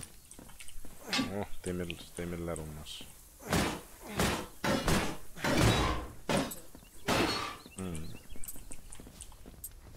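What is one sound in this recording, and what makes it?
Sharp wooden knocks sound as logs are chopped.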